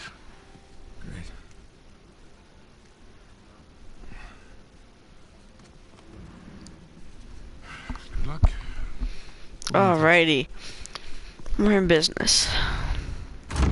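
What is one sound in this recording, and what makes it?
A young man answers briefly in a calm voice.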